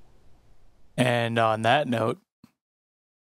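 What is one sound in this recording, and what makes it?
A man speaks calmly close to a microphone.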